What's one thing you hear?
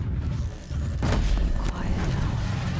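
An explosion bursts with crackling sparks.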